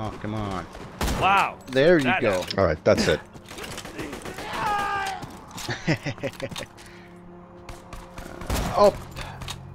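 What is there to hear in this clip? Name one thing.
A rifle fires single loud shots.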